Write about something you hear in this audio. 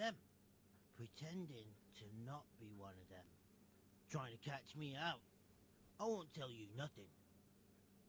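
A man speaks tensely.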